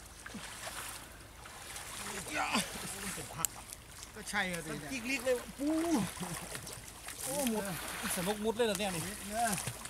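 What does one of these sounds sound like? Water splashes and sloshes as people wade through it.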